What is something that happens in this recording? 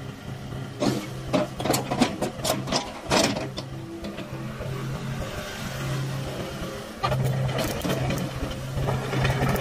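Excavator tracks clank and squeak as the machine turns.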